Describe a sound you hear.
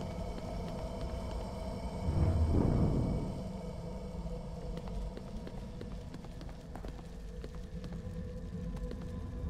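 Footsteps tread slowly on a hard stone floor.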